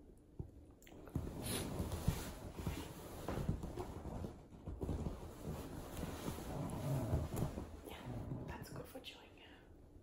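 Fabric rustles as a woman and a small dog move on a sofa.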